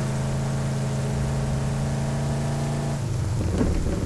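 A car engine drones steadily at speed, then cuts off.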